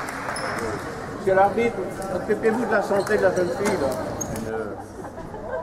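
A crowd cheers loudly in an echoing hall.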